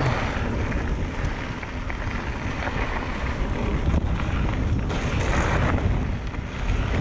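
Wind rushes past steadily outdoors.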